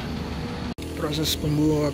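Metal tools clink against a wheel hub.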